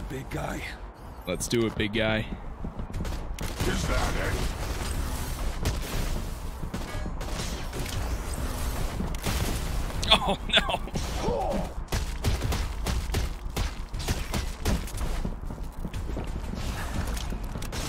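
Punches and blows thud in a fight.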